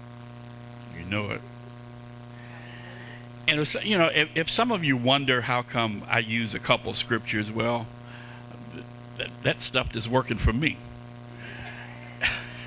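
A man speaks into a microphone, heard over loudspeakers in a large room.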